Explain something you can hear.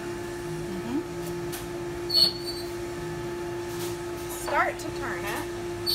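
A freezer hums steadily.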